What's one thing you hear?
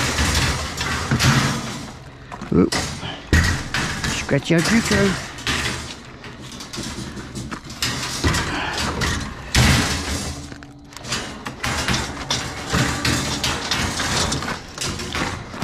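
A metal wire shopping cart rattles and clanks as it is pushed into a truck bed.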